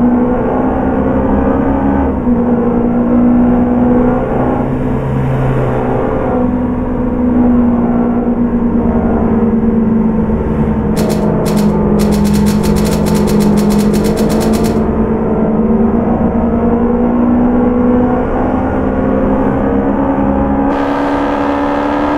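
A car engine hums steadily while driving at speed on a highway.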